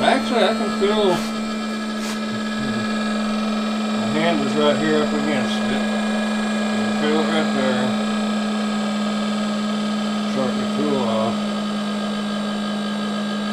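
A small electric heater's fan hums steadily.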